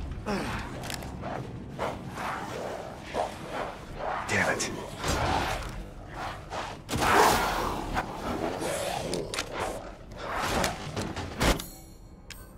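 Footsteps thud and creak on wooden stairs.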